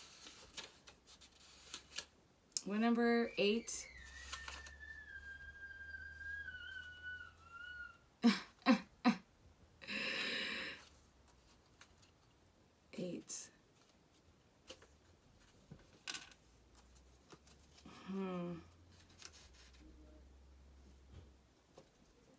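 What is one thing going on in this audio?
Playing cards riffle and slap as they are shuffled.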